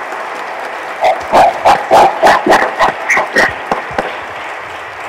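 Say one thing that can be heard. Several people clap loudly and rhythmically close by.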